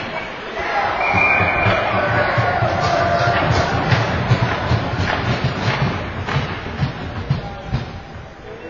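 A crowd cheers and shouts in a large echoing rink.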